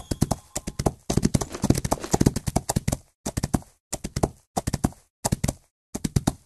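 Horse hooves gallop quickly on a dirt track.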